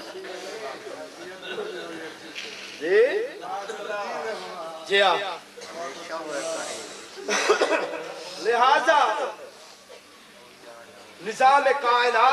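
A man chants loudly and passionately into a microphone, his voice echoing through loudspeakers.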